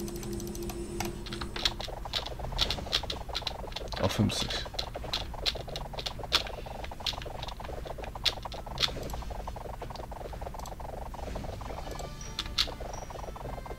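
Game sound effects click and chime rapidly.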